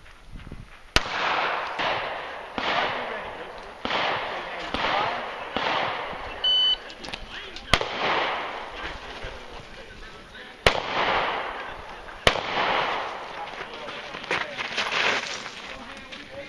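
Pistol shots crack outdoors in quick succession, each echoing off nearby walls.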